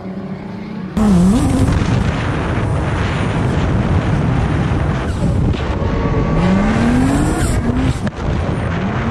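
A car engine roars and revs up and down up close.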